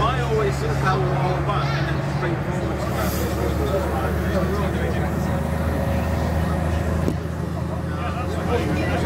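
An engine rumbles steadily from inside a moving vehicle.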